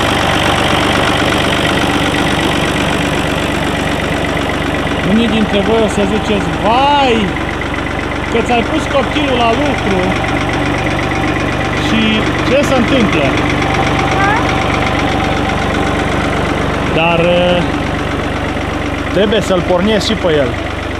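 A tractor engine idles with a steady, close, low rumble.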